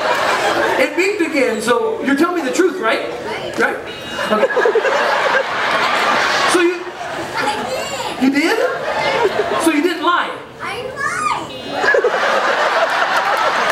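A young boy answers in a high voice.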